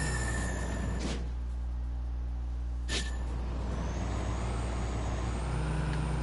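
An engine roars steadily.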